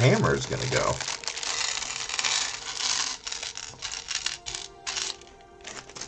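Small plastic bricks clatter in a tray.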